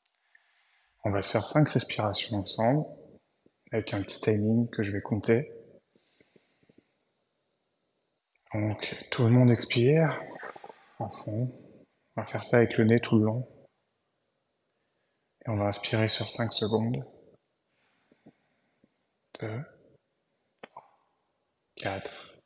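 A young man speaks calmly, close by, in short phrases with pauses.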